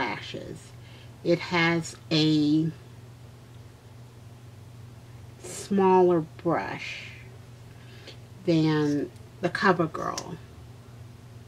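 A woman speaks calmly and close to a microphone, in short bursts.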